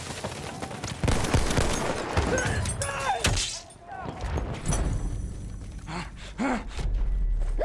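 Rifle shots crack with loud, sharp bangs.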